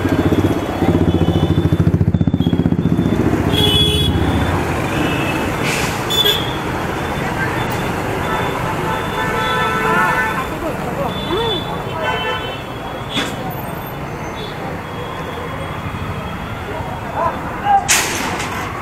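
A motorcycle engine hums up close as it rides along.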